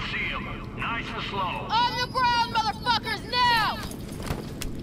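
A man shouts commands loudly.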